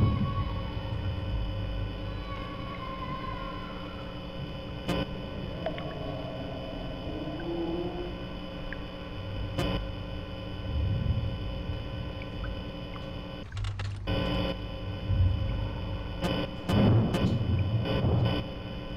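Electronic static hisses and crackles steadily.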